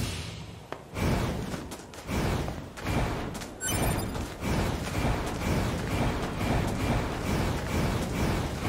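Quick footsteps rustle through tall grass.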